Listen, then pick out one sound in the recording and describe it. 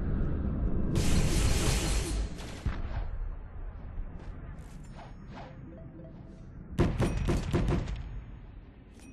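Game effects crackle and hiss in bursts.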